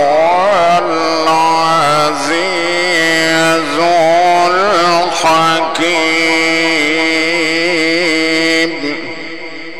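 A man chants a long melodic recitation into a microphone, his voice ringing out through a loudspeaker with echo.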